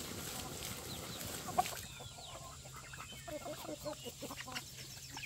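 Chickens cluck softly nearby.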